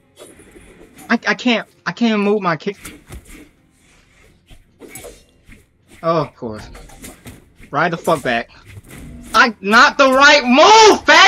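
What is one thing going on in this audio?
A young man talks with animation into a microphone, at times shouting.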